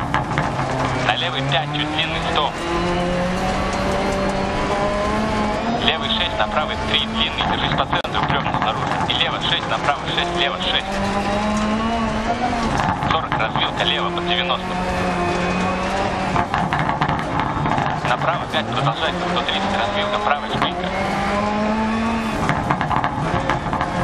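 Gravel crackles and pops under the tyres.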